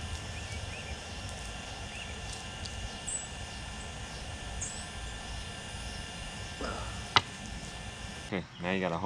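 A knife slices through raw chicken skin.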